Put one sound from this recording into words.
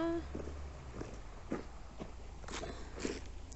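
Footsteps crunch through dry leaves and twigs.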